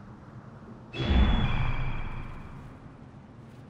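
A large bird beats its wings with a loud whoosh.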